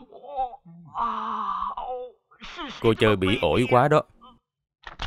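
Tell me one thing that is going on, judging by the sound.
A young man speaks with agitation.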